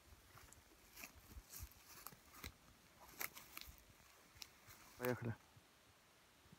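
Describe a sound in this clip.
Leaves and twigs rustle as a man moves through the undergrowth.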